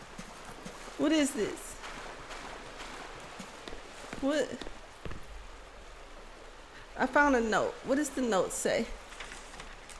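A young woman speaks with animation into a close microphone, in short bursts.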